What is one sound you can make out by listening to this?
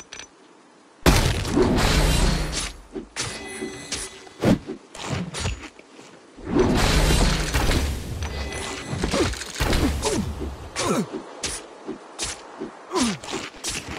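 Magic ice spells burst with loud rushing blasts.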